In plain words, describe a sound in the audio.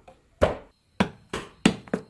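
A chisel is struck into wood with a mallet.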